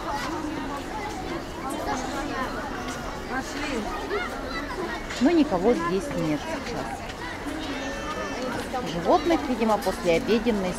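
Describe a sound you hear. A crowd of men, women and children chatters nearby outdoors.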